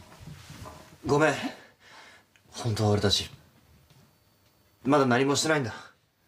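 A young man speaks in a pleading, apologetic voice nearby.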